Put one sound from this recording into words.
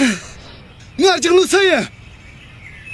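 A man shouts loudly with animation.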